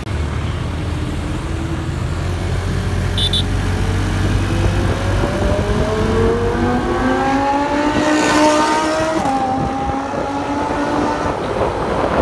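A Lamborghini Huracán V10 accelerates away hard, its engine note climbing through the gears.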